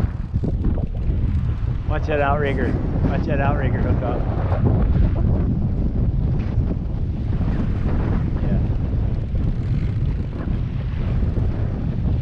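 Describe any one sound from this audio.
Waves slosh and splash against a boat's hull.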